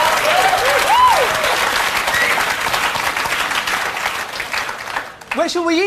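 A large audience claps and cheers loudly.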